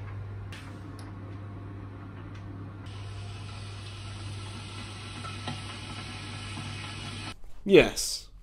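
A kettle hisses steadily as its water heats.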